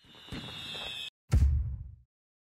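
Fireworks pop and crackle.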